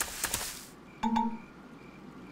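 A short chime sounds.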